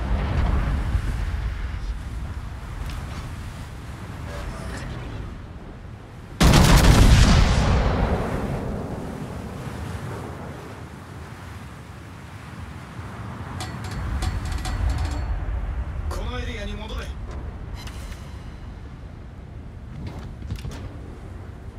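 Ocean waves wash and splash against a ship's hull.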